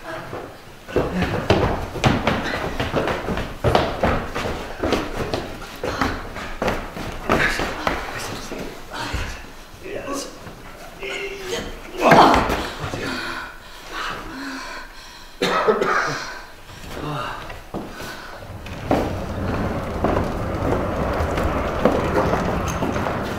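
A heavy cloth sack scrapes and rustles as it is dragged across a wooden floor.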